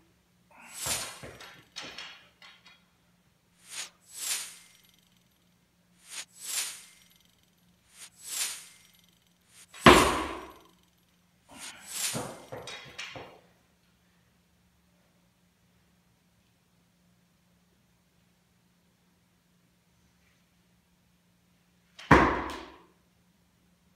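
A barbell clanks and thuds.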